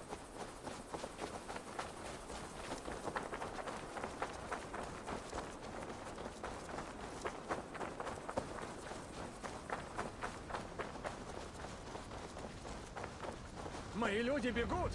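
Footsteps run quickly over soft ground.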